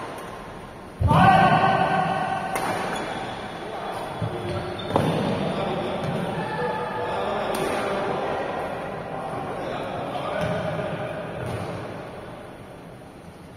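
Men shout briefly during play in a large echoing hall.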